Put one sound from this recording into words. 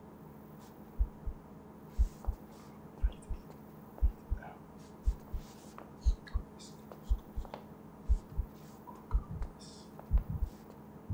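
Footsteps pace back and forth on a hard floor outdoors.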